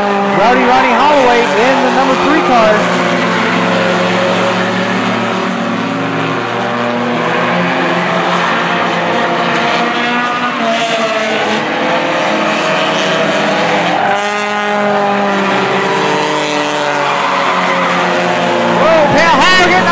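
Race car engines roar steadily as cars speed around a track.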